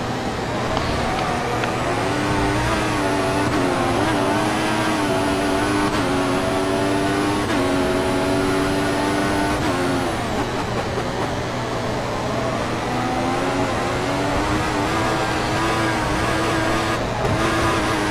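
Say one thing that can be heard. A racing car engine roars and whines, its pitch rising through the gears and dropping with each shift.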